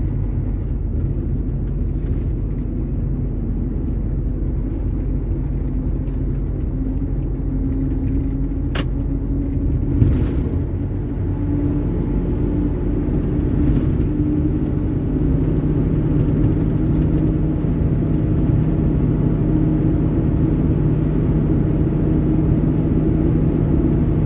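A vehicle's engine drones steadily at a low pitch.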